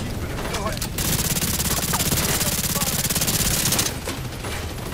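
A rifle fires in rapid, continuous bursts.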